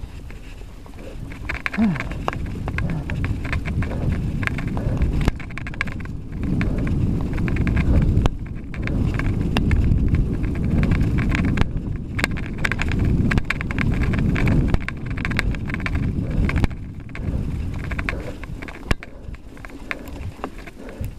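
Tyres crunch and rattle over a rough dirt track.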